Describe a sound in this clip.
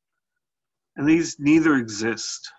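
A man speaks calmly into a microphone, heard close up.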